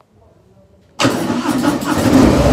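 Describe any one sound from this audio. A Harley-Davidson V-twin motorcycle engine starts up.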